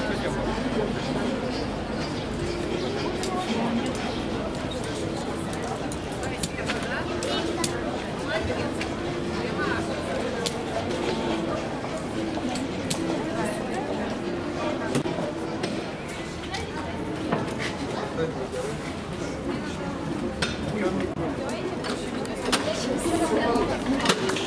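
A crowd of people chatter all around outdoors.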